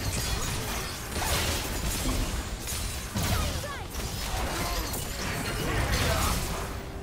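Spell effects whoosh and crackle in a chaotic game battle.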